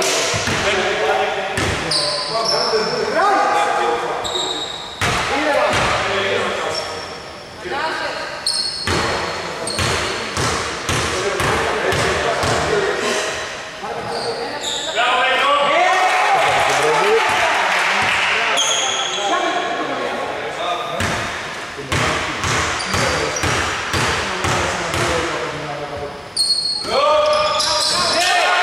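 Men call out to each other loudly across an echoing hall.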